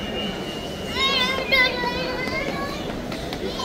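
A toddler squeals in a high voice.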